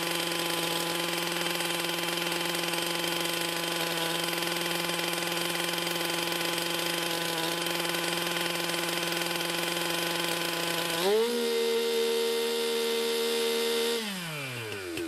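A two-stroke engine idles steadily, then revs up at about eleven seconds, holds high, and drops back down.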